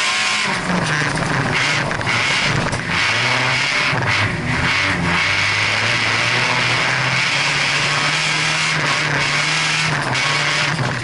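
Gravel and dirt spray and rattle against the underside of a car.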